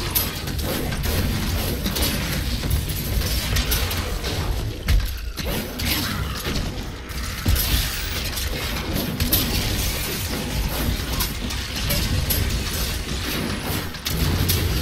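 Fiery spell blasts and explosions crackle and boom again and again.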